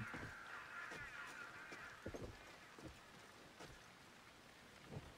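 Soft footsteps thud on stone at a slow, even pace.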